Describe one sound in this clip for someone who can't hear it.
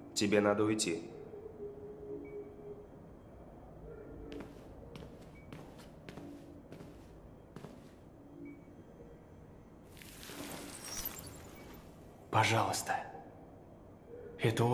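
A young man speaks calmly and up close.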